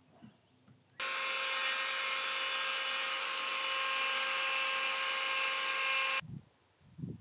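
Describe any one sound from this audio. A power grinder whines steadily as it sands wood.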